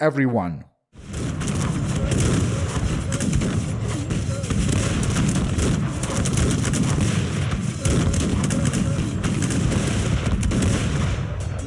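A large battle din rumbles steadily with crackling shots.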